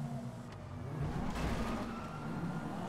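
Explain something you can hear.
A car scrapes against a concrete wall.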